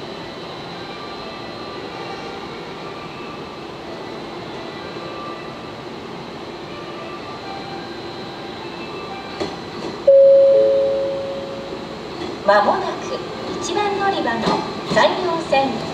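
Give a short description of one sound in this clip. A train rolls slowly into a station, its wheels rumbling and clattering on the rails.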